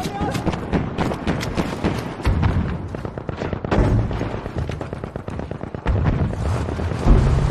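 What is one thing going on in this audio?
A machine gun fires rapid bursts nearby.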